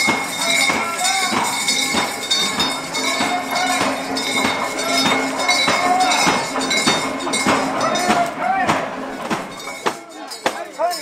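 A crowd murmurs and talks in the background.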